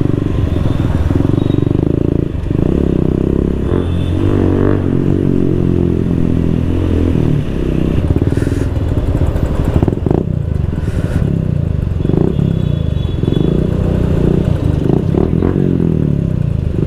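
A motorcycle engine rumbles and revs up close.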